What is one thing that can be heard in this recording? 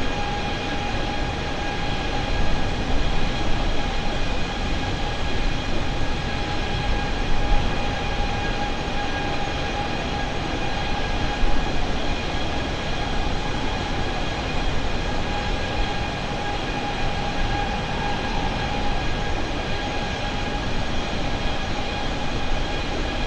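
Jet engines drone steadily with a high whine.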